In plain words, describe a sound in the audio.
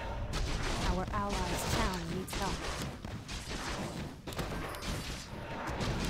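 Video game combat sounds clash and crackle.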